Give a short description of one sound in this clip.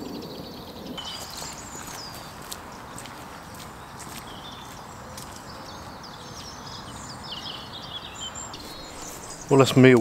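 Footsteps crunch on a dirt path and fade away.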